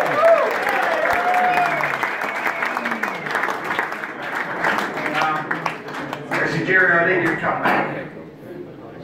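A crowd chatters and laughs in a busy room.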